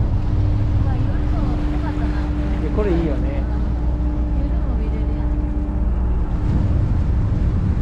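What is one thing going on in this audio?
Water churns and splashes in a ship's wake.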